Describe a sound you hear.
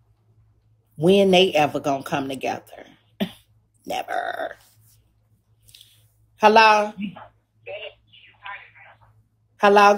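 A woman talks casually and animatedly into a close microphone.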